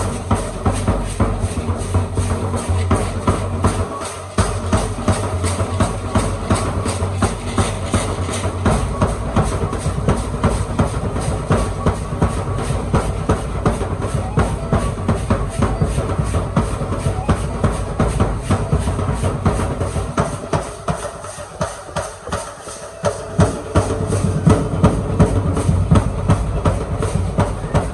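Rattles shake in a steady, fast rhythm.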